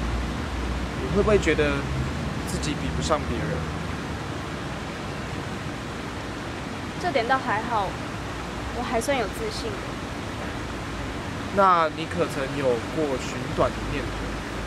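A young man reads out questions calmly nearby.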